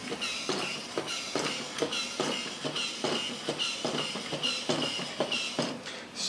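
A battery toy robot whirs and clatters as it walks.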